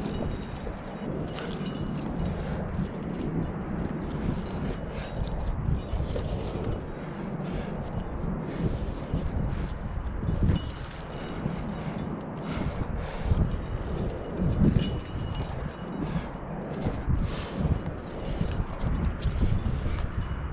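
Hands scrape and slap against rough rock.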